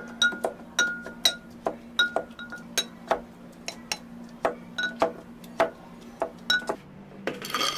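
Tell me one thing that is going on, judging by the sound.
A muddler thumps and clicks against the bottom of a glass jar.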